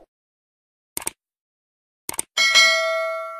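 A mouse button clicks a few times.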